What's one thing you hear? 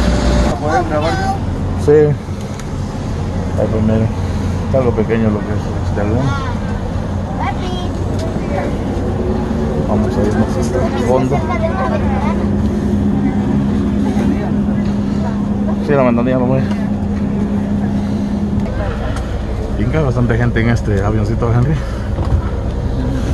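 An airplane cabin hums steadily.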